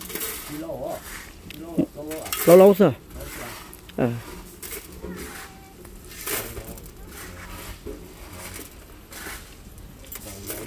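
Shovels scrape and toss gravel in the distance.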